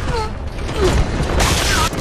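A rifle fires in a burst.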